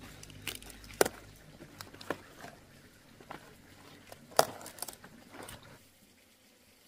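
Cabbage leaves rustle and snap as hands break them off the stalk.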